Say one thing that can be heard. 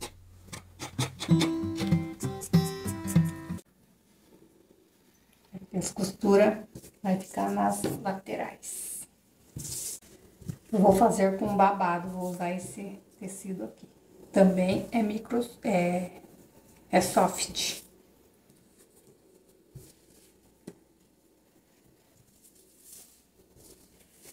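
Fabric rustles as it is handled and smoothed.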